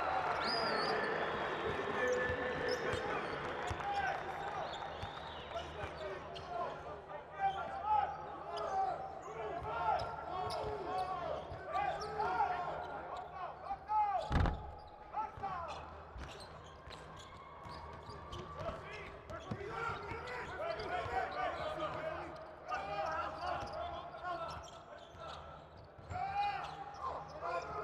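A crowd cheers and murmurs in a large echoing arena.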